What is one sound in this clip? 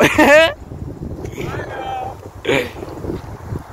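A young man laughs close to the microphone.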